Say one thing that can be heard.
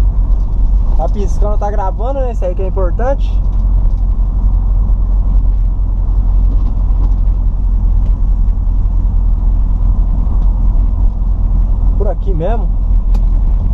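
Tyres screech on asphalt as a car slides through turns.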